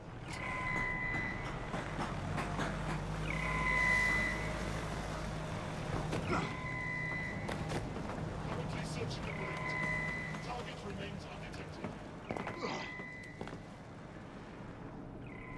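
Footsteps clatter on metal grating.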